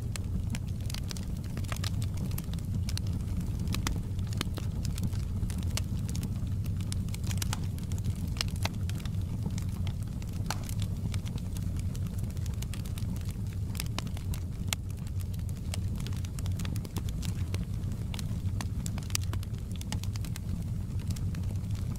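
A wood fire crackles and pops with sharp snaps.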